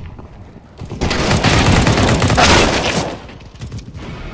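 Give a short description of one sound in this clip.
A grenade explodes close by.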